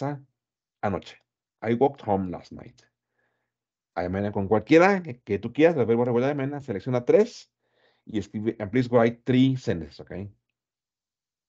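A man speaks clearly through an online call microphone, as if teaching.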